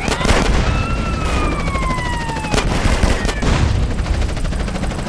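An explosion booms and crackles with fire.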